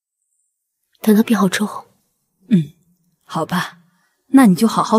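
A younger woman answers softly close by.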